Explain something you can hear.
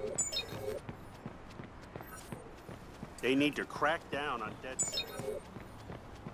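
Footsteps tap on a pavement at a walking pace.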